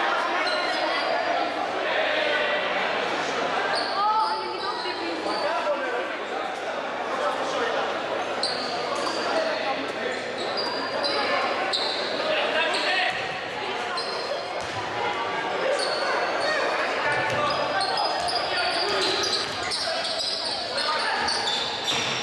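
Basketball shoes squeak on a hardwood court in an echoing gym.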